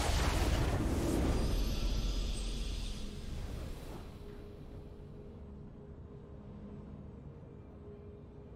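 A triumphant victory jingle plays.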